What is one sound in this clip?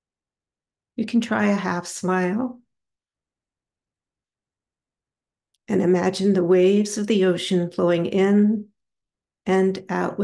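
A woman speaks calmly close to a microphone, with pauses.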